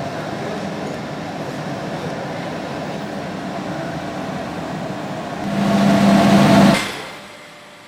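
A machine hums steadily and swells louder for a moment.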